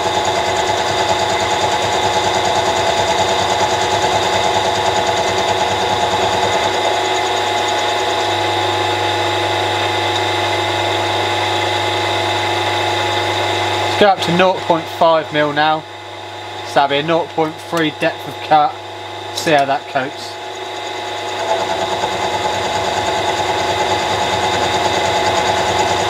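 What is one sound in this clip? A milling machine whirs steadily as its cutter grinds into metal.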